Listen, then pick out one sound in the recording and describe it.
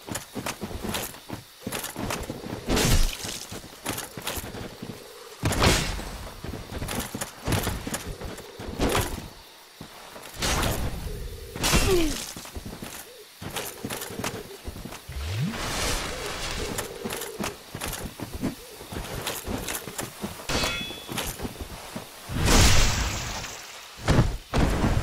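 Swords clang and slash in a fight.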